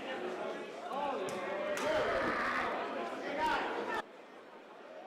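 A crowd chatters and murmurs close by.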